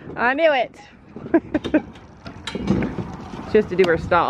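A plastic cart rattles and bumps as it is pulled along.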